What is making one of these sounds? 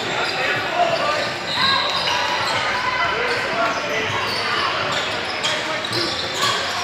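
Players and spectators call out and chatter, echoing in a large hall.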